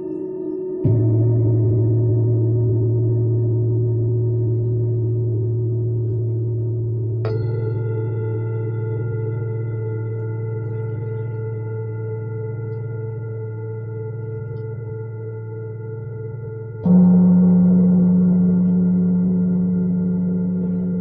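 A low, steady electronic tone hums and jumps to a new pitch in sudden steps.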